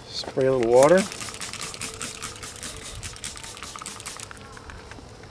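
A spray bottle squirts in quick pumps.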